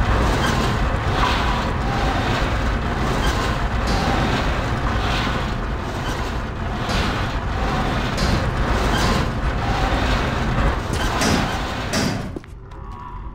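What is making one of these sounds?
A heavy crate scrapes and grinds across a stone floor.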